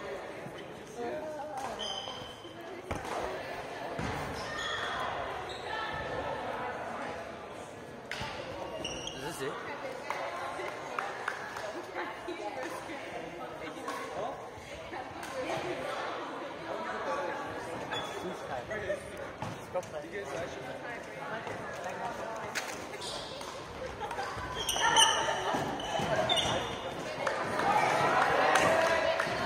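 Young people chatter and call out in a large echoing gym.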